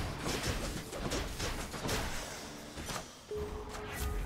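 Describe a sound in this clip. Video game combat sounds clash and whoosh rapidly.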